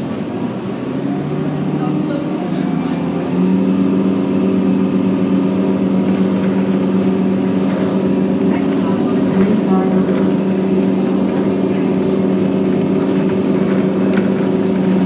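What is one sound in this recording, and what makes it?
A bus rattles as it rolls along the road.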